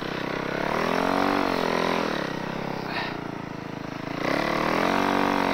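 A snowmobile engine revs up and down loudly close by.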